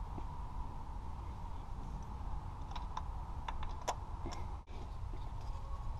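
A ratchet wrench clicks as it turns a bolt.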